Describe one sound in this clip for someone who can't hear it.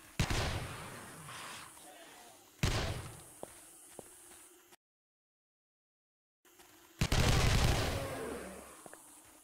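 A rifle fires single loud shots that boom and echo away.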